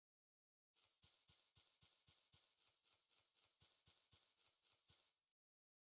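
Footsteps pad softly on sand.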